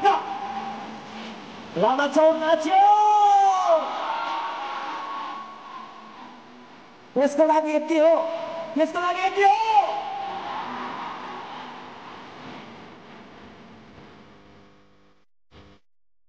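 A large outdoor crowd cheers and shouts loudly, then fades away.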